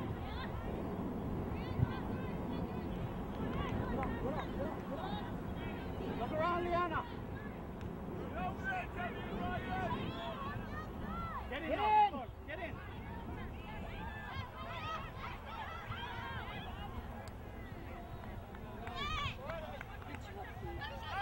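Young players and spectators shout across an open field.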